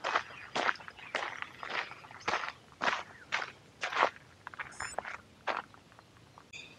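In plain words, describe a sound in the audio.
Footsteps crunch steadily on a gravel path outdoors.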